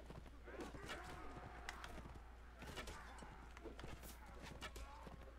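Men shout and yell in a battle.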